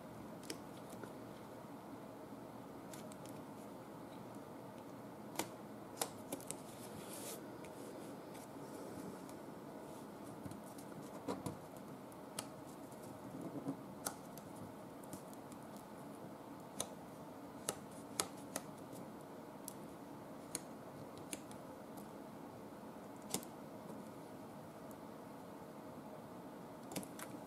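Paper rustles and crinkles as hands fold and press it.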